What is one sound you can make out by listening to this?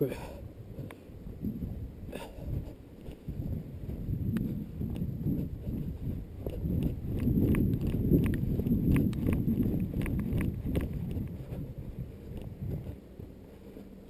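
Bike tyres rumble and rattle over a bumpy dirt trail.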